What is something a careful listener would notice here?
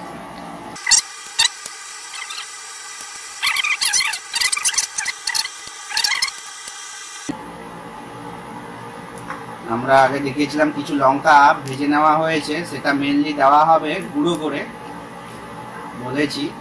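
Hot oil sizzles steadily in a pan.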